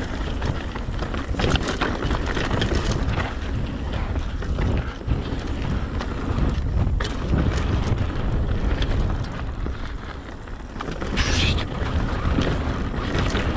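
Mountain bike tyres crunch and rattle over dirt and rocks.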